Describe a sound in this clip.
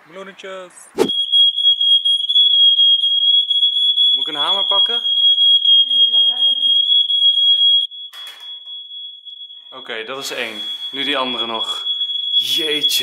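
A smoke alarm sounds a loud, steady, shrill tone.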